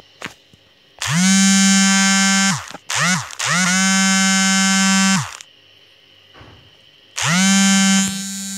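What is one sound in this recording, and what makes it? A phone ringtone plays in loud, steady bursts.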